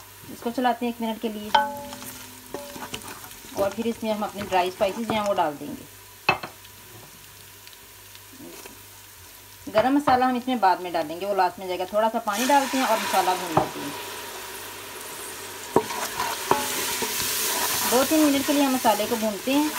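A wooden spoon scrapes and stirs against a metal pot.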